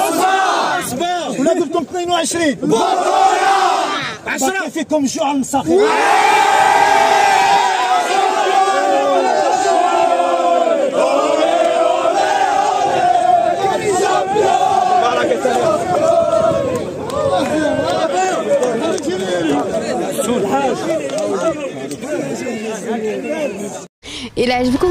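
A crowd of young men chants and sings loudly together outdoors.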